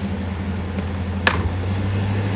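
A switch clicks once.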